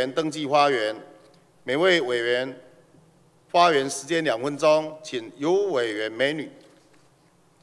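A middle-aged man speaks calmly into a microphone, reading out in a large echoing hall.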